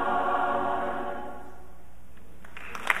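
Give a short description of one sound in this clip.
A large mixed choir sings a sustained chord that fades away in a reverberant hall.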